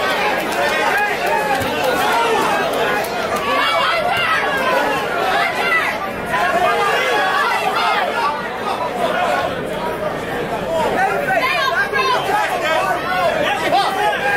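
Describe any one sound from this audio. A crowd of spectators shouts and cheers throughout in an echoing hall.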